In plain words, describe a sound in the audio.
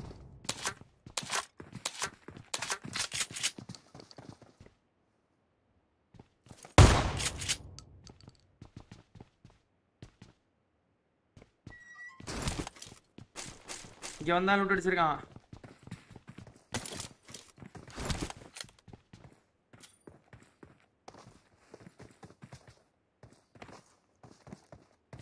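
Footsteps patter quickly in a video game.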